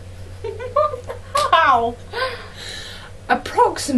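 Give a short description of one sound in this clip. A young girl laughs close by.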